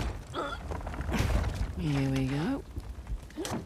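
A young woman says a few words with effort.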